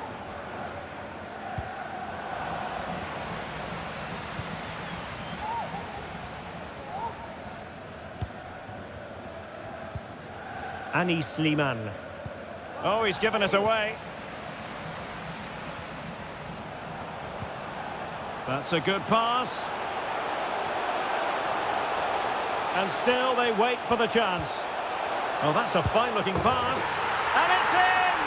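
A large stadium crowd murmurs steadily and swells into a roar near the end.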